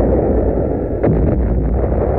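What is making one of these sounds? A ship's gun fires with a loud boom.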